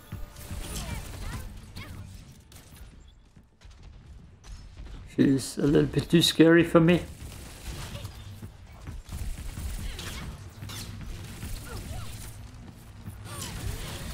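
Video game guns fire in rapid bursts.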